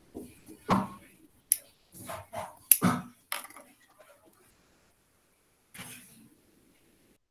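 A young woman speaks calmly and close by, in short bursts.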